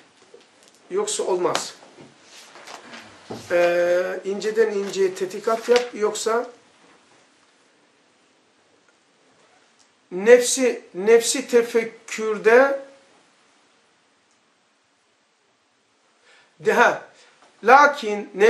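An elderly man reads aloud slowly and clearly, close to a microphone, with pauses between phrases.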